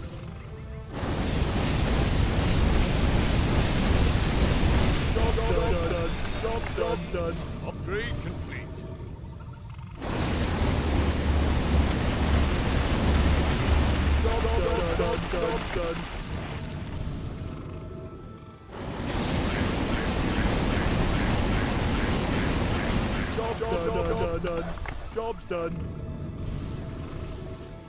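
Magic blasts crackle and whoosh over and over.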